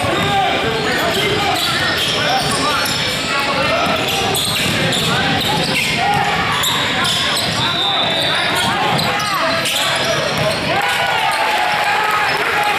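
Sneakers squeak sharply on a hardwood court in a large echoing gym.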